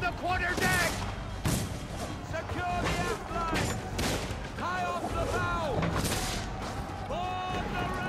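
Muskets fire in sharp bangs.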